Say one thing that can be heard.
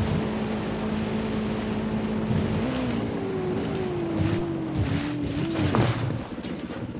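A motorbike engine hums steadily, then drops in pitch and cuts out.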